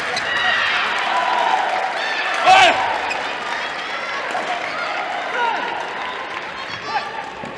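Sports shoes squeak sharply on a hall floor.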